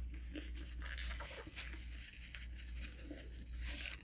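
A young woman wipes her mouth with a rustling napkin.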